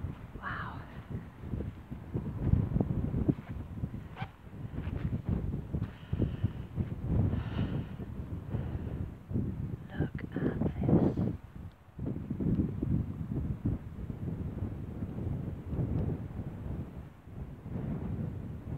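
Wind buffets and rumbles outdoors in gusts.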